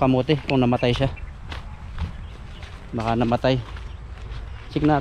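A young man talks casually, close to the microphone.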